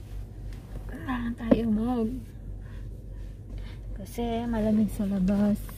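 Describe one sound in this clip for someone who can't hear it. A young woman sings close by.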